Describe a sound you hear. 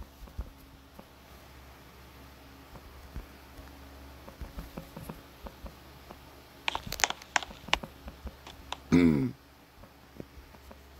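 Taps click on a phone's touchscreen keyboard.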